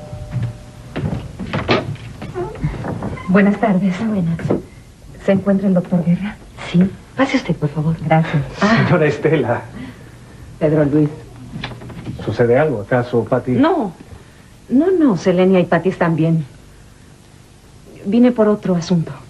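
A man talks heatedly.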